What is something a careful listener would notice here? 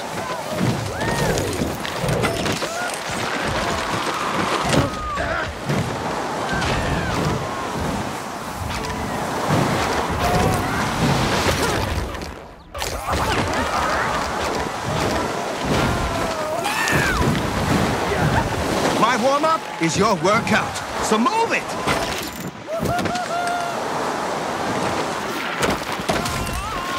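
Skis hiss and scrape over snow at speed.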